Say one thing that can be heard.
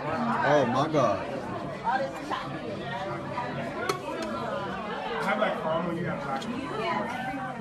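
A metal utensil scrapes and clinks against a pan of fried food.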